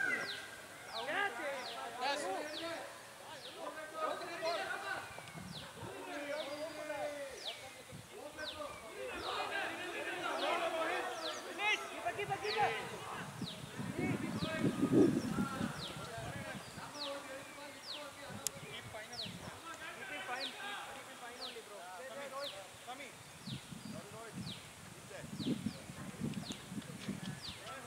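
Men call out and chat at a distance outdoors.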